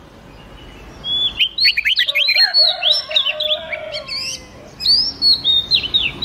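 Songbirds sing in quick, bright whistling phrases.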